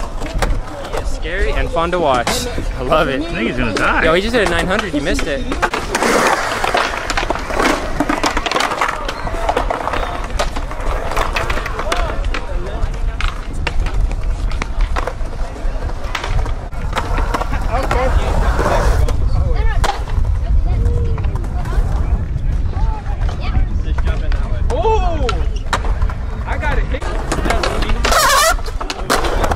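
Skateboard wheels roll and rumble over concrete.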